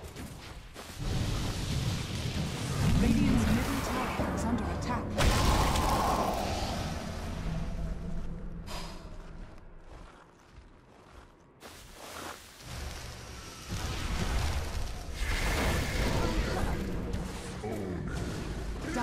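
Magic spells blast and crackle in a fantasy battle.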